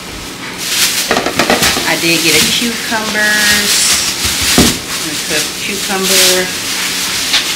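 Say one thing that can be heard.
A plastic produce bag rustles loudly.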